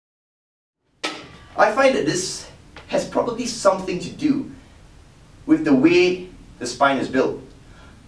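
A young man talks calmly and clearly into a nearby microphone.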